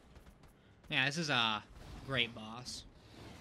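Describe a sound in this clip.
A beast growls and snarls.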